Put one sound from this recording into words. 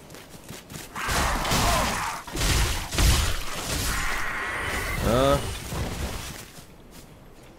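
A sword slashes and clangs against armour.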